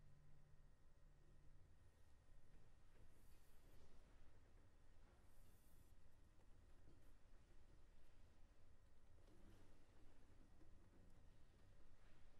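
A piano plays along softly.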